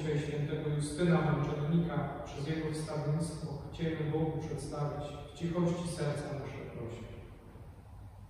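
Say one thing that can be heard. A man chants in a steady sung voice through a microphone in a large echoing hall.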